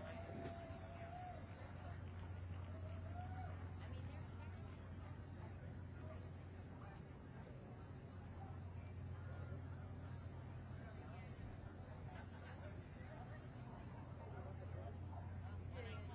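A crowd of people murmurs and chatters in the background.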